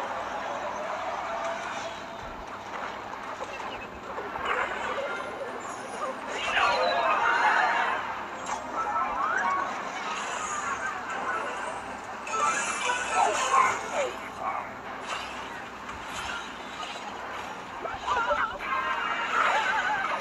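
Game sound effects of battling troops clash and pop.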